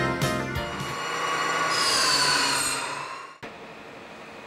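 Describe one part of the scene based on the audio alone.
A band saw whines as it cuts through wood.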